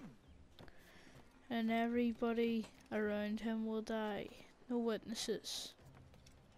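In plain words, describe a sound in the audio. Footsteps patter on roof tiles.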